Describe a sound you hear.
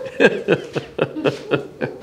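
An elderly man laughs.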